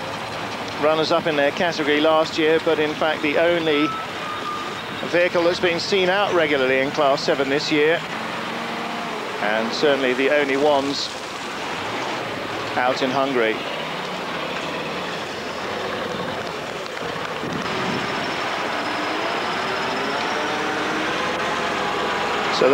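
A truck's diesel engine roars and strains as the truck climbs a steep slope.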